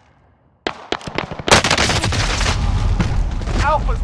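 A sniper rifle fires a single loud shot.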